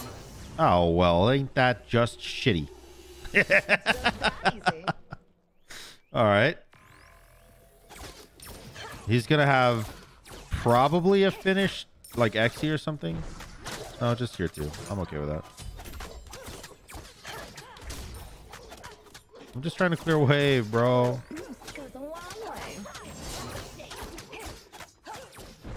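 Video game combat effects whoosh and clash.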